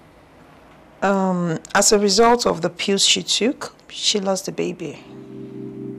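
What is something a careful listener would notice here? A woman speaks with feeling, loud and close.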